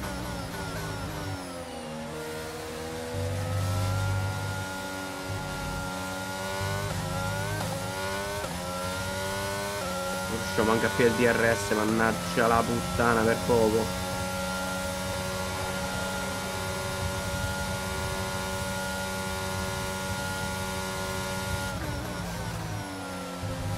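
A racing car engine whines at high revs, its pitch rising and dropping with gear changes.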